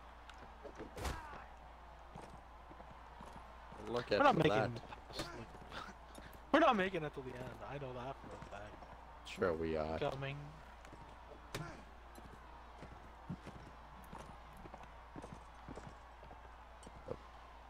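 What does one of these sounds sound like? A horse's hooves thud on dry ground at a gallop.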